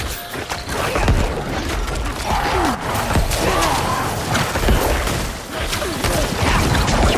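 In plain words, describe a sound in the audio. Fighting game sounds with heavy blasts and impacts play loudly.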